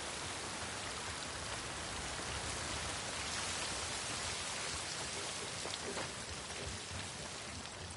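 Footsteps crunch on gravel and rubble.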